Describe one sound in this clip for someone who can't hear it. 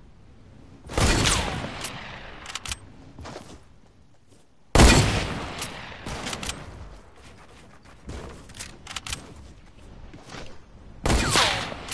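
Gunshots blast in a game with heavy booms.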